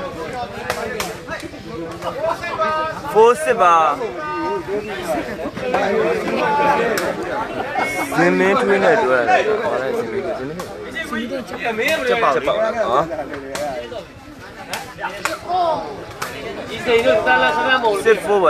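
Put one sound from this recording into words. A crowd of spectators chatters and shouts loudly outdoors.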